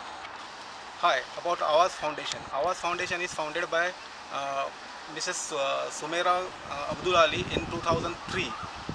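A man talks close by with animation, outdoors.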